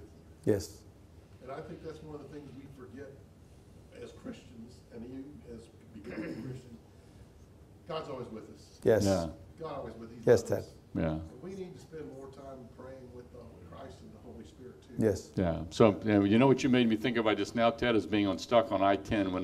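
A middle-aged man speaks calmly, close to a microphone.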